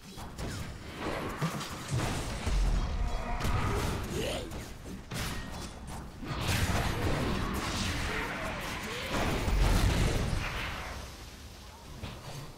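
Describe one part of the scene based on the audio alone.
Magic blasts and explosions boom and crackle in a fast fight.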